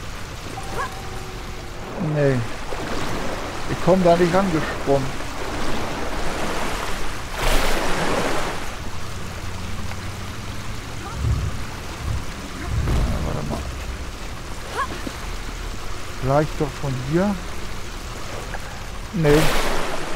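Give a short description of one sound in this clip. Water gushes steadily from a spout.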